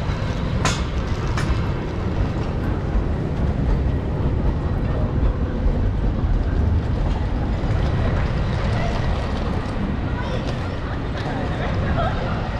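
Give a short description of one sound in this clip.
Busy city street noise hums steadily in the background.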